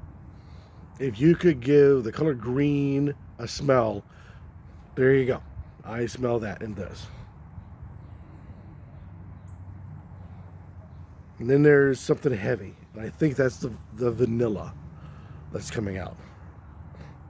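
An older man talks calmly and close to the microphone.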